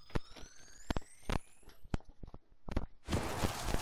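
Quick electronic ticks sound as a counter climbs.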